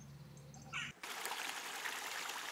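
A stream rushes and splashes over rocks close by.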